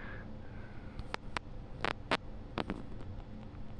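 Short menu beeps sound as a cursor moves.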